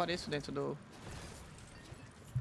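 A rock shatters into pieces.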